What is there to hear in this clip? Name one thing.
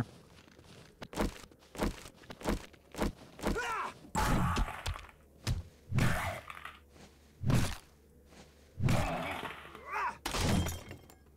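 Heavy blows thud again and again.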